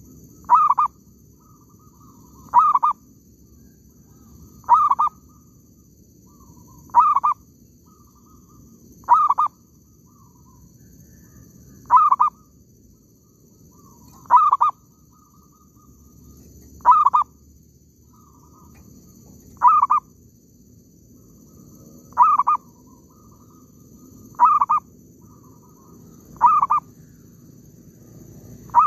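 A caged bird gives a short, sharp call again and again, about every two seconds.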